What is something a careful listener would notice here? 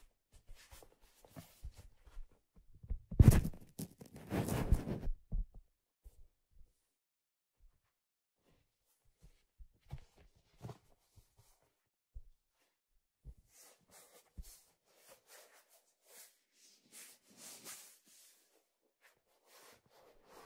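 Felt rustles and brushes as hands rub a hat close by.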